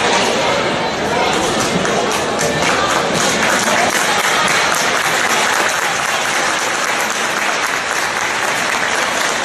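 A crowd in a large echoing gym chatters and cheers loudly.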